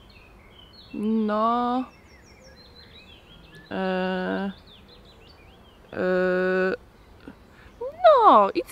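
A woman nearby sings short, drawn-out notes in a playful voice.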